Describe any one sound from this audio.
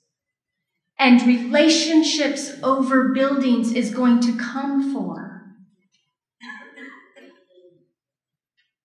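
A middle-aged woman speaks calmly into a microphone, heard through a loudspeaker.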